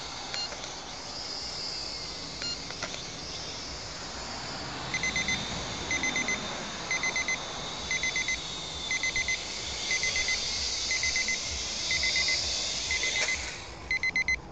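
A small drone buzzes with a high whine overhead, rising and falling in pitch.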